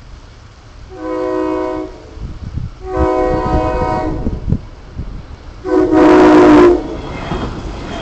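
A train horn blows loudly several times, growing closer.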